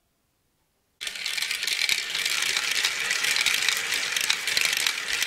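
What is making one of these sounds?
Glass marbles roll and rattle along a wooden track and around a plastic spiral.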